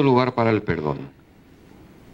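A man speaks into a microphone over loudspeakers in an echoing hall.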